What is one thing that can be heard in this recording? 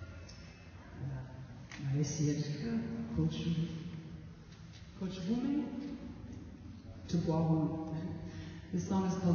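A woman sings into a microphone over a loudspeaker system.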